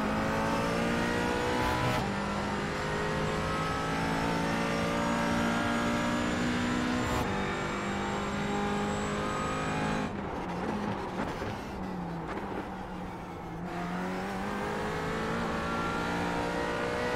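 A racing car engine roars loudly, revving up and shifting gears.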